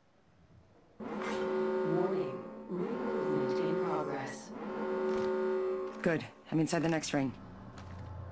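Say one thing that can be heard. A video game alert sounds with a loud, wavering electronic tone.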